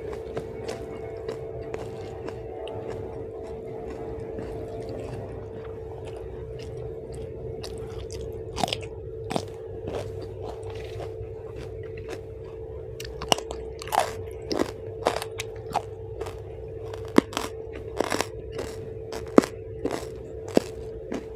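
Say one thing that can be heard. Fingers squish and rustle through sticky rice on a leaf, close up.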